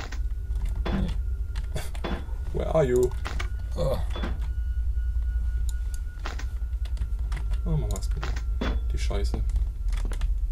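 Two young men talk and react quietly through microphones.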